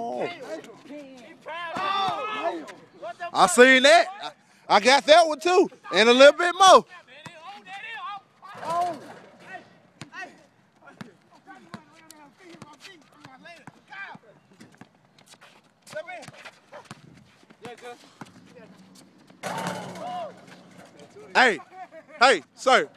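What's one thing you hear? Young men talk and call out loudly outdoors.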